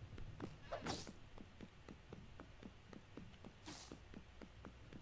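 A soft whooshing puff sounds twice.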